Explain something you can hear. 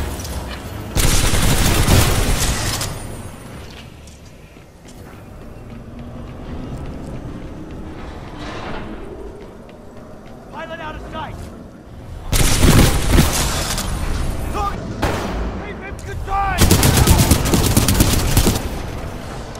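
Rapid gunfire bursts loudly in quick volleys.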